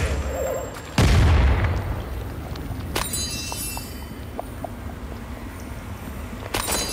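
A magic spell whooshes and hums.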